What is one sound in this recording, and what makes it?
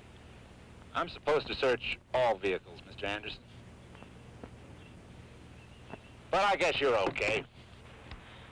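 A man speaks firmly up close.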